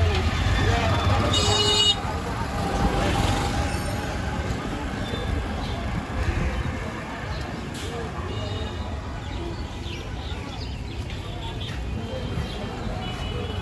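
An auto-rickshaw engine rumbles steadily close by.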